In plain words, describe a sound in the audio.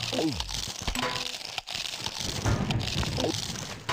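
A coin chimes as it is collected.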